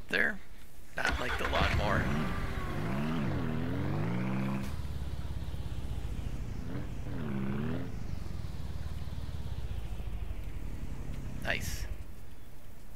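A small engine idles and revs up and down as a vehicle drives.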